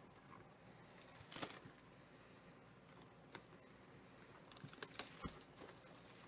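Fingers tear and crinkle plastic wrapping on a cardboard box, up close.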